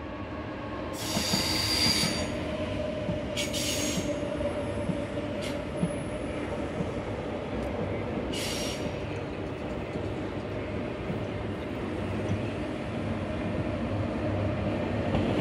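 Train wheels clatter over rail joints.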